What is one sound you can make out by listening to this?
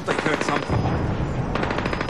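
A gun fires a single sharp shot.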